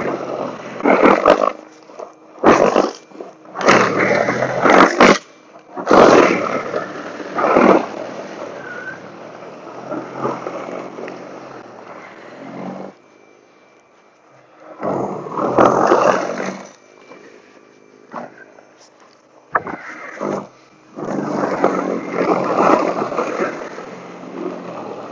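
An electric snow blower whirs steadily outdoors.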